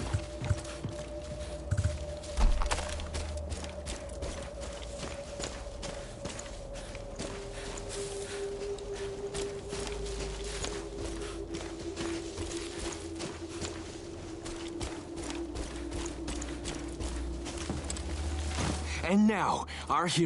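Footsteps crunch steadily over forest ground.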